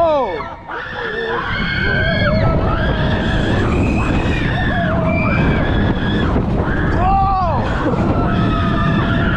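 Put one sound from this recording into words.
Wind roars loudly past the riders.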